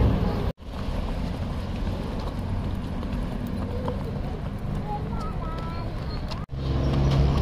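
Small children's footsteps patter on pavement.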